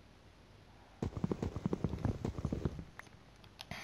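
A wooden sign is struck with rapid hollow knocks until it breaks apart.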